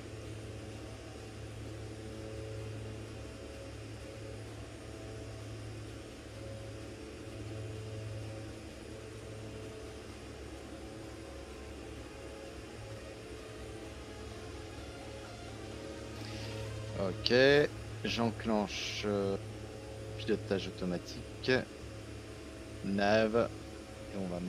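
A propeller plane's engines drone steadily.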